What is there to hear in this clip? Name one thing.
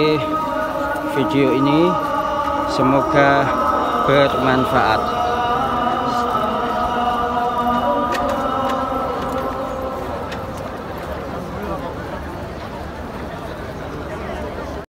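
A large crowd murmurs and chants outdoors.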